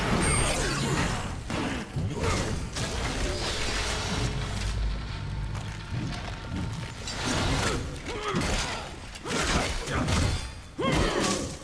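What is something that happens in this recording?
A sword slashes and clangs in a fight.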